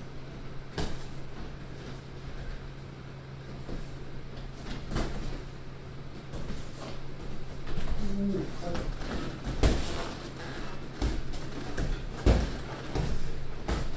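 Sneakers squeak and shuffle on a mat floor.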